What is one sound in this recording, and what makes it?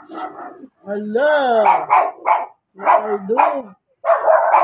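A young monkey squeals in a high voice.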